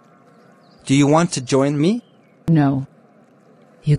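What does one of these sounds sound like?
A young man asks a question in a calm voice.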